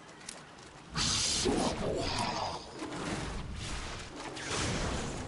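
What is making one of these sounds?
Magic blasts and clashing battle effects burst in quick succession.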